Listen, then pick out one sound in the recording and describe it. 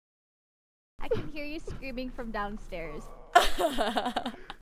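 A young woman talks with animation through a microphone.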